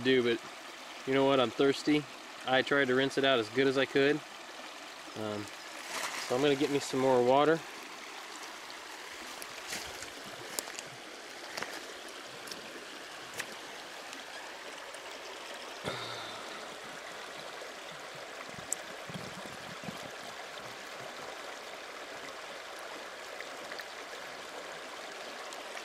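A shallow stream trickles and babbles over rocks.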